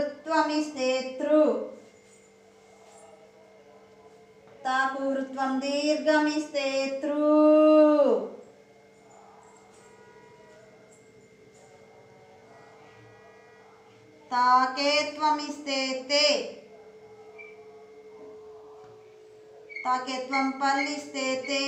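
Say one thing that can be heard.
A woman speaks slowly and clearly nearby, drawing out syllables as if teaching.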